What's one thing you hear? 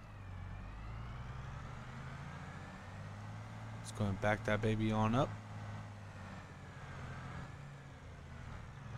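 A tractor engine hums steadily at low idle.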